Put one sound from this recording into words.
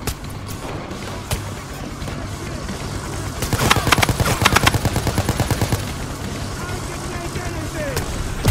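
A helicopter's rotor thumps and whirs close by.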